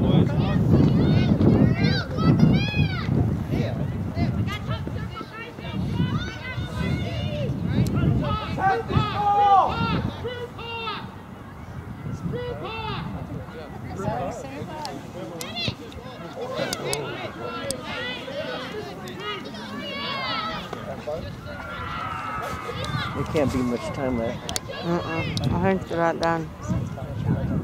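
A crowd of spectators cheers and shouts nearby, outdoors.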